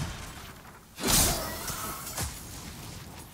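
Electricity crackles and hisses around a fighter.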